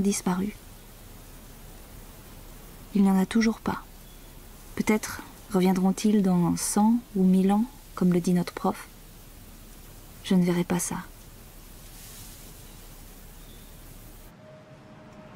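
Wind rustles through tall grass.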